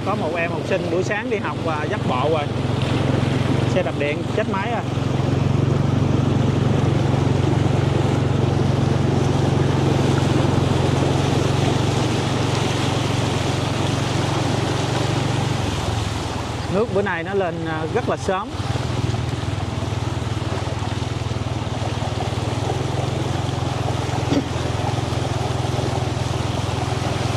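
Floodwater splashes and swishes around moving wheels.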